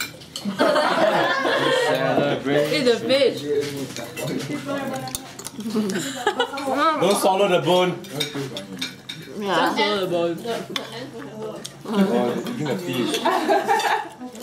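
Young women laugh and chatter with animation close by.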